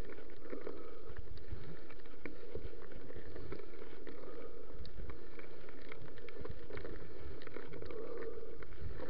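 Bicycle tyres roll over a bumpy dirt trail.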